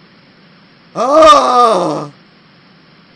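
A young man wails loudly in a falling voice into a close microphone.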